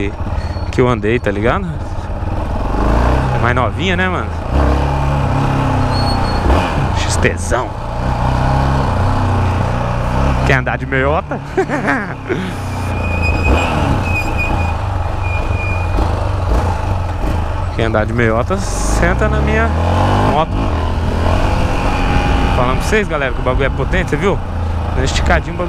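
A motorcycle engine hums and revs as it rides through city traffic.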